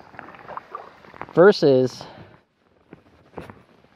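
A kayak paddle splashes in water.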